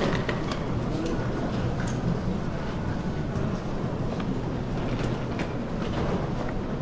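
A wheeled suitcase rolls across a carpeted floor.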